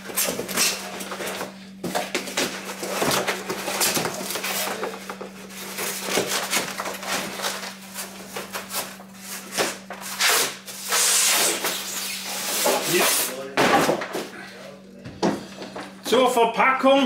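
A cardboard box rustles and scrapes as it is opened and handled.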